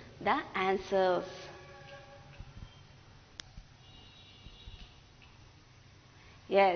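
A woman speaks clearly and slowly into a close microphone, as if teaching.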